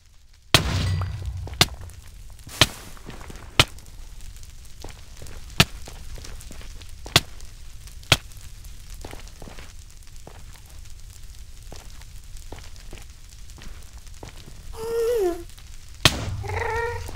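Blocks are placed with short, sharp knocks.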